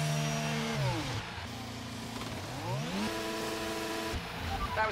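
A racing car engine revs up sharply and drops back.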